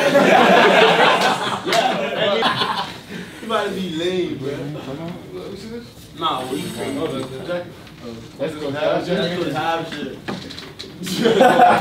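A man speaks loudly to a group in a room.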